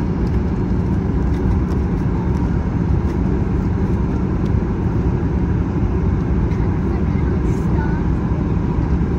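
A jet engine hums with a steady low roar, heard from inside a cabin.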